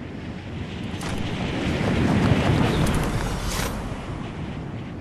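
A loud whoosh swells and fades as a glider opens.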